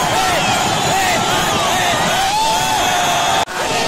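A young man shouts excitedly close by.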